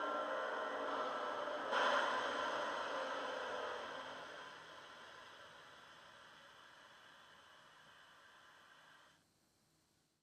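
A model diesel locomotive's engine hums steadily and slowly fades away.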